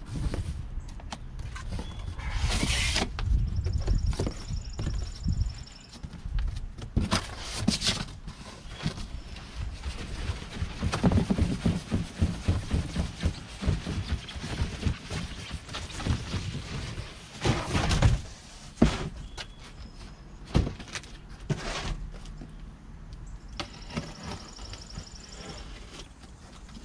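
Cardboard flaps rustle and scrape as a box is handled.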